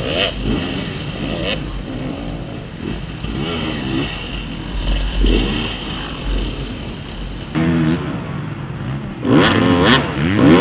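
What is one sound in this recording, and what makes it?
A dirt bike engine revs loudly in short bursts.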